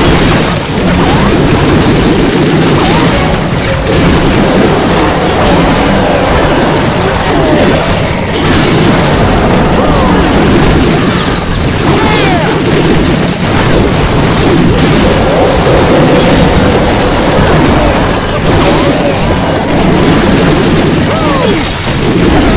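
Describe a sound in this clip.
Cartoonish battle sounds clash and crackle with small explosions.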